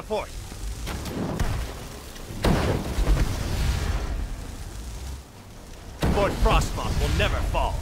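Magic spells crackle and hum with electric sparks.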